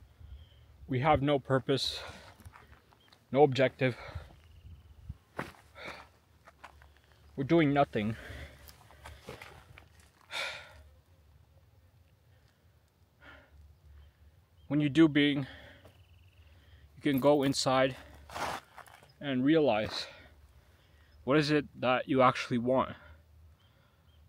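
A young man talks close up, in short bursts with pauses.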